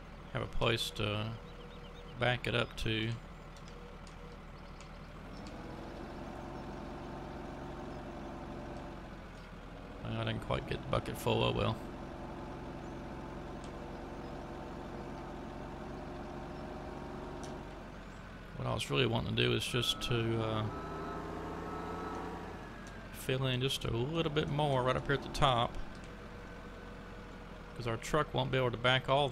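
A loader's diesel engine hums steadily and revs up and down.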